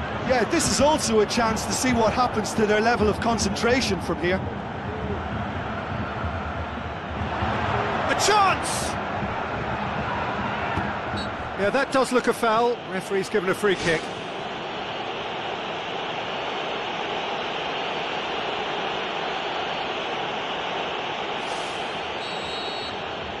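A large stadium crowd roars steadily in the background.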